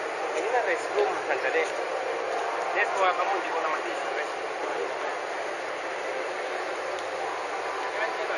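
A crowd of people chatter in the distance outdoors.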